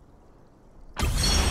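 A bright chime rings out as the reveal ends.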